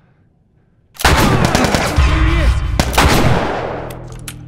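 Gunshots crack loudly and echo.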